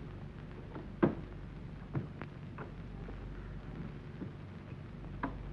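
A door rattles and knocks as a man struggles with it.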